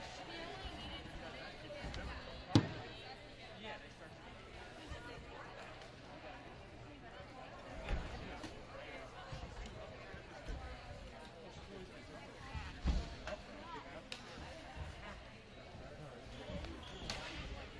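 A crowd of people chatters in a large echoing gym.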